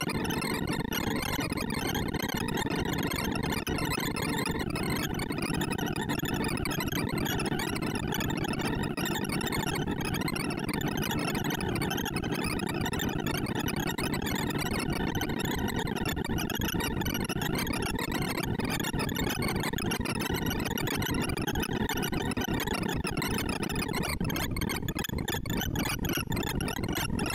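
Rapid electronic beeps chirp and warble without pause.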